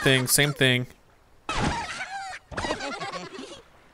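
A slingshot stretches and launches with a snap.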